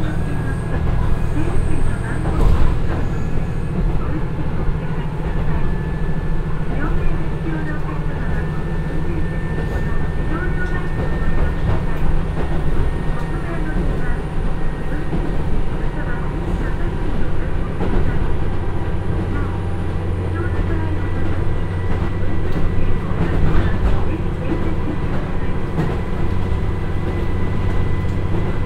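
Train wheels clatter and rumble on the rails.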